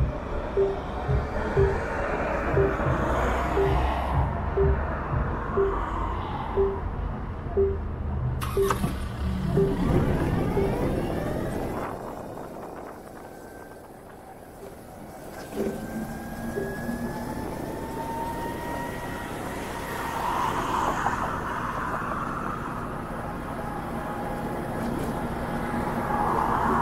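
Wind rushes past while riding outdoors.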